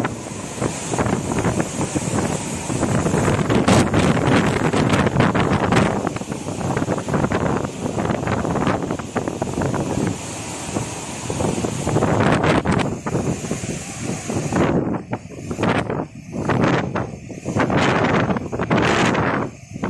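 Rough sea waves crash and churn.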